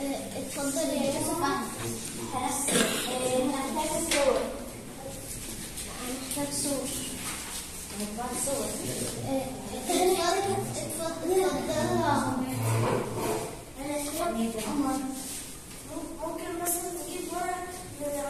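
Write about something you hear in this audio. Young children call out answers.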